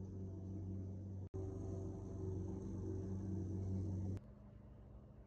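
A push lawn mower drones outside, heard through a window.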